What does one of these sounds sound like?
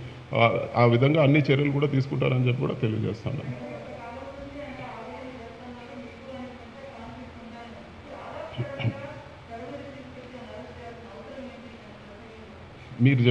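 A man speaks firmly into a microphone in a room with a slight echo.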